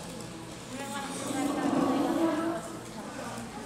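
A young boy talks nearby.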